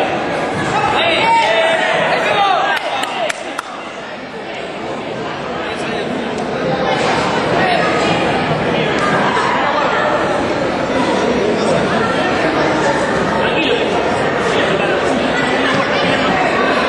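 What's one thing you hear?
A crowd in a large echoing hall cheers and shouts throughout.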